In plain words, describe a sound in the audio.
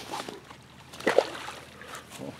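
Water splashes as a fish is released into a stream.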